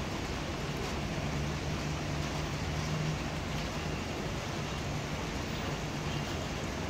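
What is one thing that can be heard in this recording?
Steady rain falls outdoors with a soft, even hiss.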